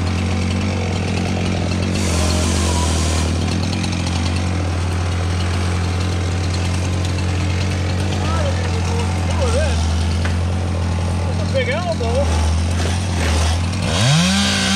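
A chainsaw engine runs steadily close by.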